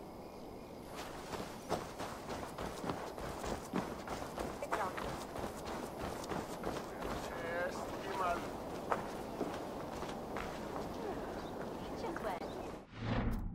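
Footsteps run quickly over dirt ground.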